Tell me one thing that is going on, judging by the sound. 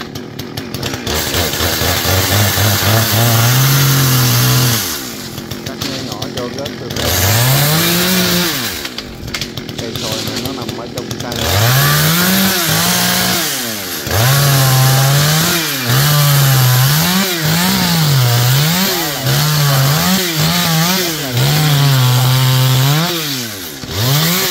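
A chainsaw engine revs up and down, cutting into a branch.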